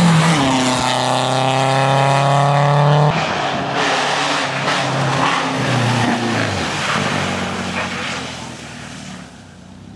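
Tyres hiss and crunch over a snowy road.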